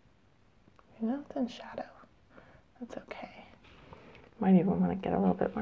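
A woman speaks calmly and close into a clip-on microphone.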